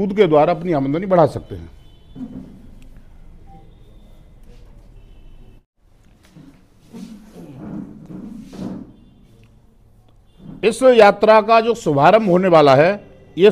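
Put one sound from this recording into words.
A middle-aged man speaks into a close microphone, calmly and firmly, with pauses.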